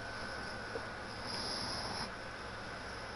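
A smoke grenade bursts open and hisses briefly.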